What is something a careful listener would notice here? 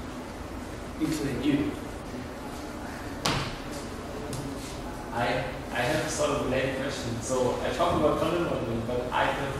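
A man talks calmly to an audience, a little way off.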